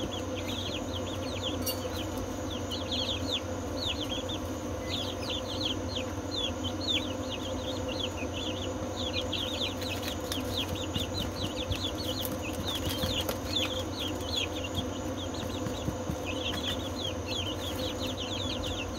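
Many chicks peep rapidly and constantly close by.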